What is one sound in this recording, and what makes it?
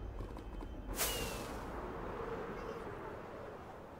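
A firework rocket launches with a sharp whoosh.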